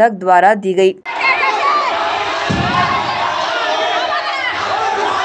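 A crowd of men and women shout and argue in a scuffle.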